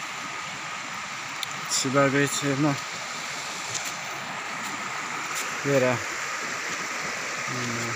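Shallow river water rushes steadily over stones.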